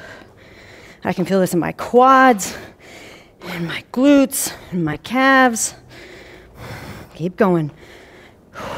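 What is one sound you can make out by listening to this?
A young woman speaks clearly and with animation, close to a microphone.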